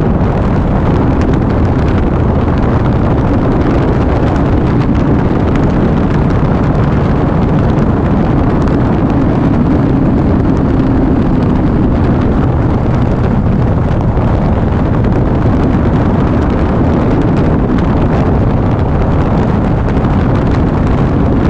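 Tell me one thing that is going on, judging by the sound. Wind roars loudly past a rider's helmet.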